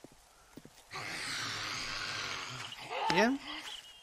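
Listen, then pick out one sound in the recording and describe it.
A zombie growls nearby.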